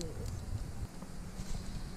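A campfire crackles and pops.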